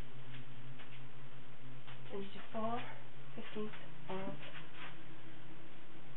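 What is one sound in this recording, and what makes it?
A person shuffles and rustles about close by.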